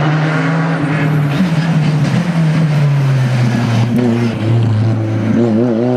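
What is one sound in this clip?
A rally car engine roars loudly as the car speeds past close by.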